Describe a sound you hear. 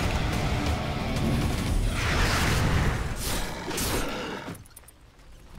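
Magic spells crackle and whoosh in a loud fight.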